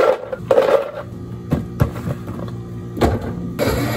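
A blender crushes ice with a loud whir.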